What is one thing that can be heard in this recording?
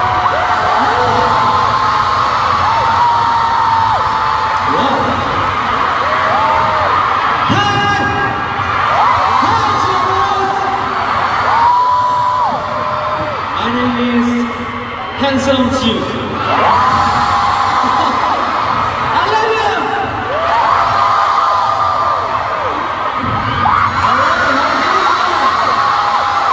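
A young man speaks into a microphone, heard through loudspeakers.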